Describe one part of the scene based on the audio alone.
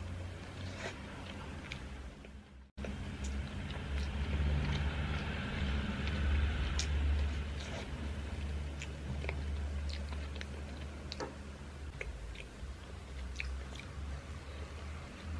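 A young woman chews soft bread with wet mouth sounds close to a microphone.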